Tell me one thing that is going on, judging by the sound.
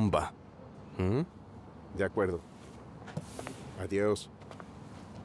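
A young man answers calmly, close by.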